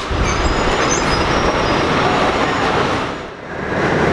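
An escalator hums and rattles steadily.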